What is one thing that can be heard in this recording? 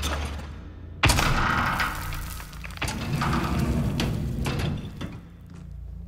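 A heavy door creaks and scrapes open.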